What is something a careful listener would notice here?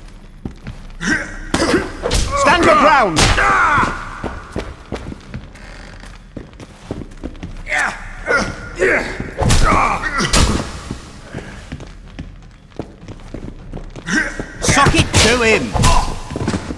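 Fists thump against bodies in a fistfight.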